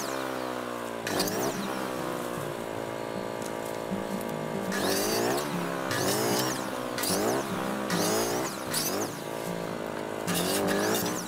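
An electric chainsaw whines steadily and bogs down in bursts as it cuts through branches.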